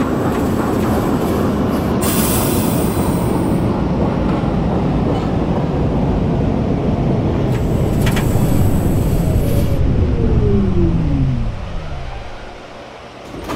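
A train rumbles along the tracks and slows to a stop.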